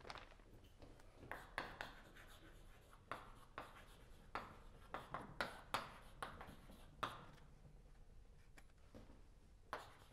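Chalk taps and scrapes on a blackboard in a quiet, echoing room.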